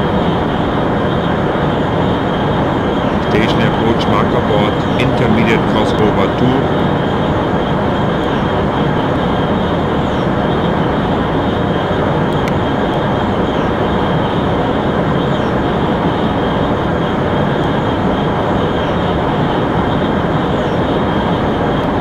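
A high-speed train roars steadily along the rails.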